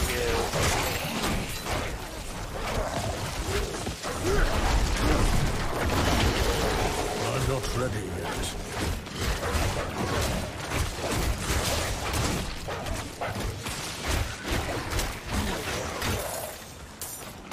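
Spells crackle and blast in a fierce fight.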